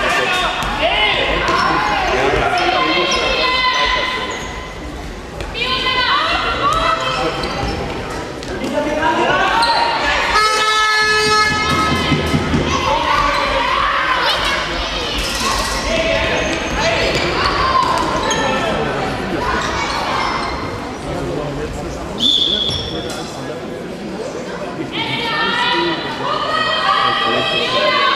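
Sneakers squeak sharply on a hall floor, echoing.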